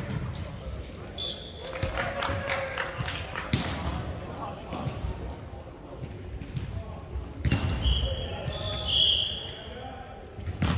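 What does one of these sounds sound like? A volleyball thuds off hands and arms in a large echoing hall.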